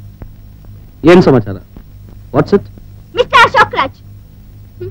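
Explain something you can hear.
A woman speaks emotionally, close by.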